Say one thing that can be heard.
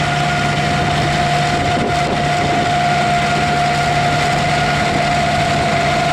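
A harvester clatters and rattles as it moves over the soil.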